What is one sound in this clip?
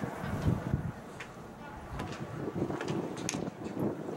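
A bat hits a softball with a sharp crack.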